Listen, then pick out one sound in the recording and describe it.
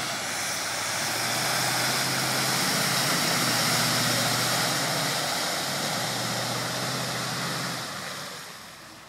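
An engine roars as a truck ploughs through deep water.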